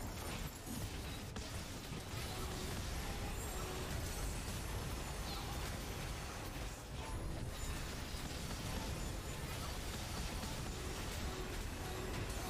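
Video game battle effects clash and whoosh.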